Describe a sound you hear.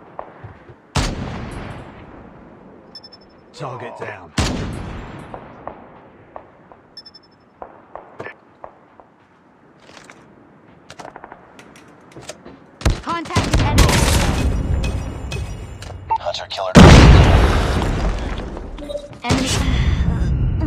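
Sniper rifle shots fire with a loud boom and a ringing echo.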